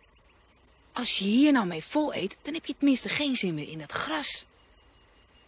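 A boy speaks calmly and gently, close by.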